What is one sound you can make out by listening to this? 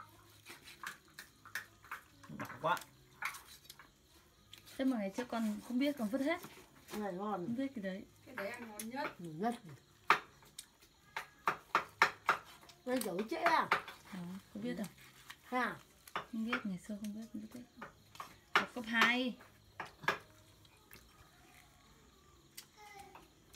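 A cleaver chops through meat and bone on a wooden board with sharp knocks.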